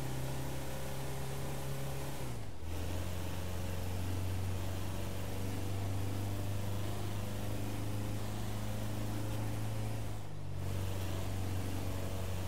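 A van engine drones while cruising.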